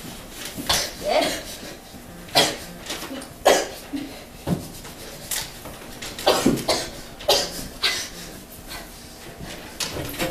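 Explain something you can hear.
A young woman speaks with animation nearby in a slightly echoing room.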